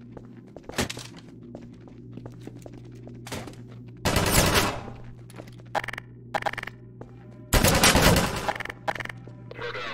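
Footsteps tap on hard stairs.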